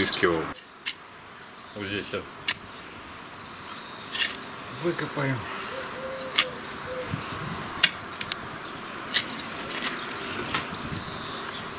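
A trowel scrapes and digs into loose soil.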